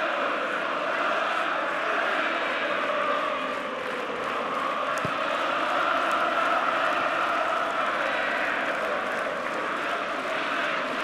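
A large stadium crowd chants and sings steadily.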